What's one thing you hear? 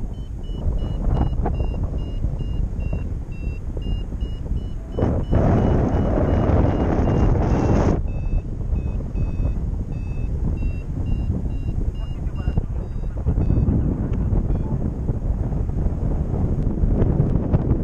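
Wind rushes and buffets loudly against a microphone.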